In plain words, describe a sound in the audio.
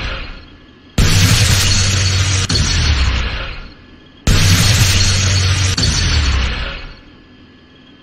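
A heavy explosive blast booms and rumbles.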